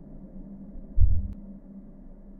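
A body hits the ground with a heavy, dull thud.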